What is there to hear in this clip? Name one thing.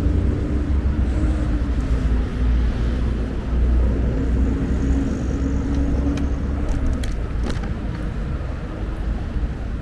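City traffic hums steadily outdoors at night.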